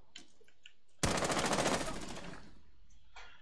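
A burst of rapid gunfire rattles.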